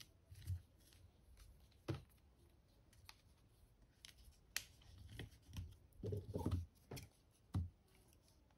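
Hands rustle and handle a plastic doll up close.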